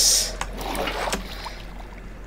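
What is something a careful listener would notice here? Water splashes and pours.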